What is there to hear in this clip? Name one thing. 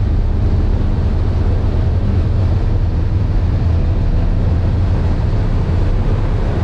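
A car engine drones loudly and steadily at speed.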